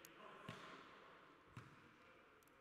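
A ball is kicked with sharp thuds in a large echoing hall.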